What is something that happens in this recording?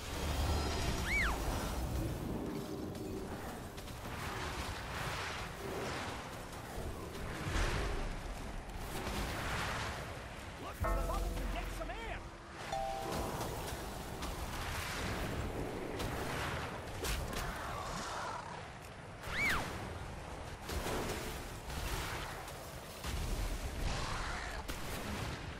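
Magic spells whoosh and crackle in a fast fight.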